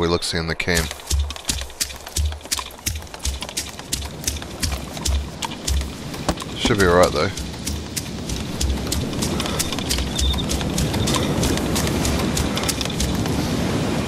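Footsteps crunch over grass and brush at a steady walking pace.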